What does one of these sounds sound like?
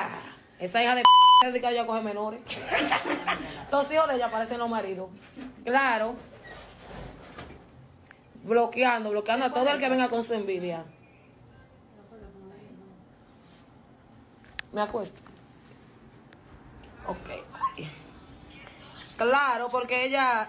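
A young woman talks with animation over a phone's live stream, in bursts with pauses.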